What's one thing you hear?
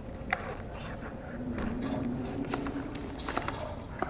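Hands rummage through a wooden crate with soft knocks.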